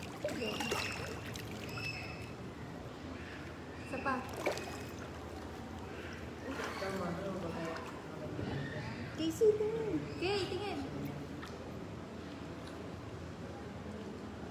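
Water laps gently in a pool.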